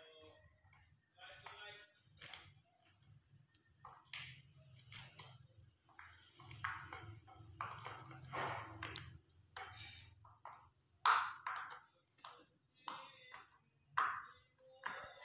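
Silicone bubbles pop softly under fingers.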